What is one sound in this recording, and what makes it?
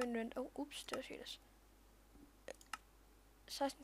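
Menu buttons click sharply a few times.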